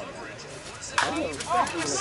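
A bat hits a ball with a sharp crack.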